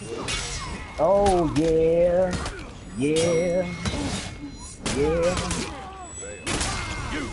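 Warriors shout and grunt in battle.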